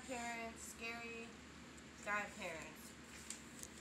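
Sheets of paper rustle as they are flipped.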